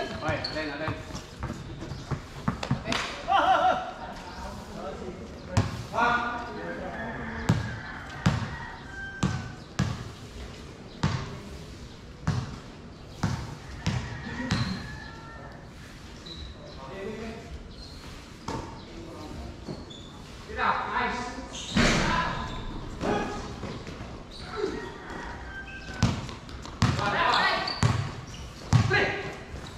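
Young men shout and call out to each other during a game.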